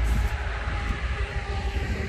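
A light box truck drives past on a highway.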